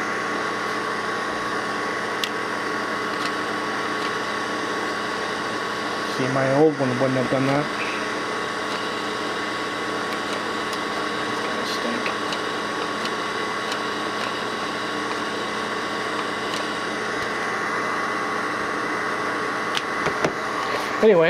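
A soldering gun hums steadily up close.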